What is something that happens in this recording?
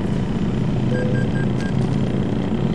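A dashboard alert beeps briefly.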